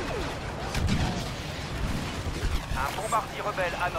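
A grenade explodes with a deep boom.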